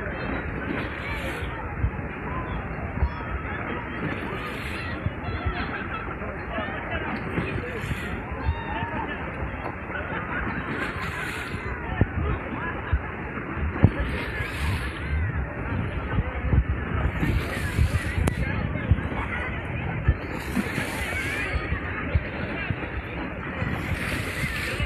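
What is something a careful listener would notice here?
A crowd of children and adults shout and chatter in a pool.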